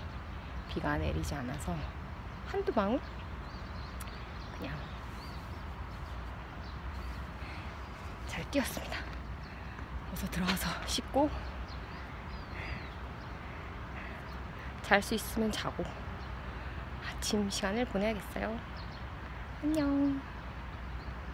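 A young woman talks calmly close to the microphone, outdoors.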